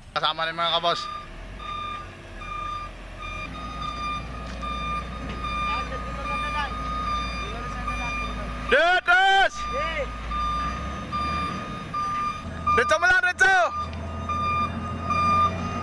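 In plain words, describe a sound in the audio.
A truck's reversing alarm beeps at a steady pace.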